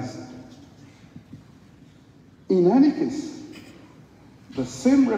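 A man speaks with animation over a microphone in a large echoing hall.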